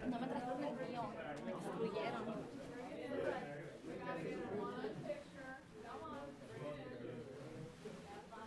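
A crowd of men and women chatter and talk over one another indoors.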